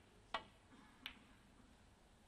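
A snooker ball clicks against another ball.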